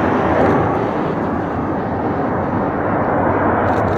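Tyres screech briefly as an airliner touches down on a runway.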